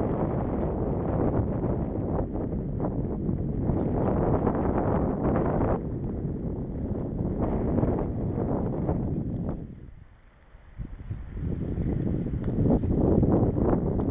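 Wind rushes and buffets loudly past a moving bicycle.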